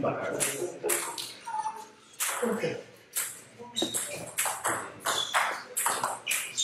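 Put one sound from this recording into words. A ping pong ball clicks sharply back and forth off paddles and a table in a rally.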